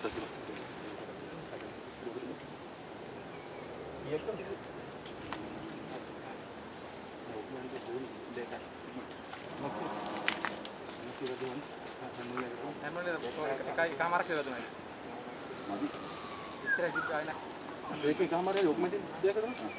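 Several men talk with one another outdoors.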